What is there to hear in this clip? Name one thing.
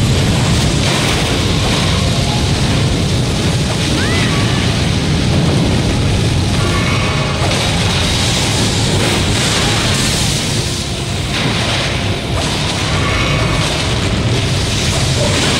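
Blades swing with sharp whooshing slashes.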